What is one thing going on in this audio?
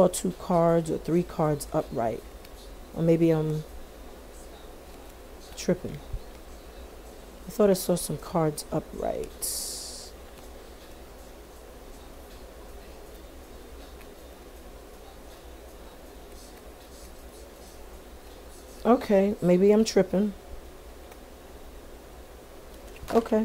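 Playing cards riffle and slide softly as they are shuffled.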